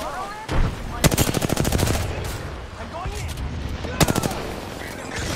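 A rifle fires rapid bursts of shots close by.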